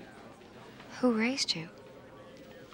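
A woman speaks in a tense, surprised voice close by.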